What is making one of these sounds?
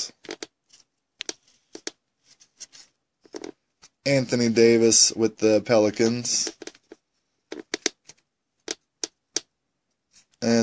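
Stiff cards slide and tap softly against each other.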